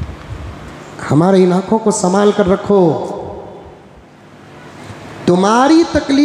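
An elderly man preaches with animation through a microphone.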